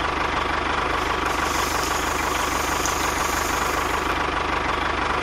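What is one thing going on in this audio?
Sand pours out of a toy trailer onto a pile with a soft hiss.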